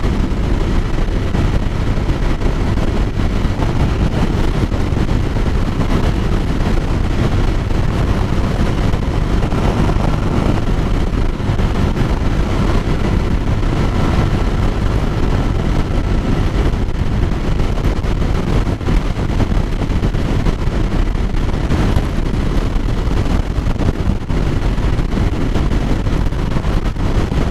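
Wind roars loudly and steadily against a microphone while riding at speed outdoors.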